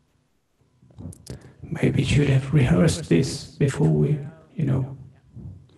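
Several men talk over each other with animation through an online call.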